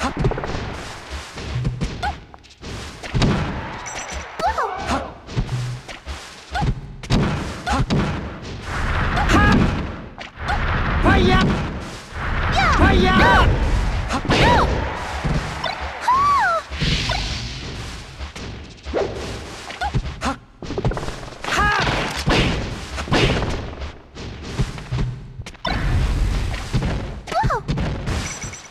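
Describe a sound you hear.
Game punches and kicks land with sharp smacks and thuds.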